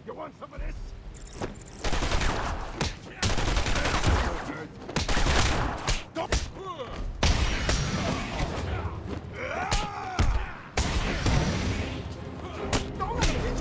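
Men grunt and groan as they are struck.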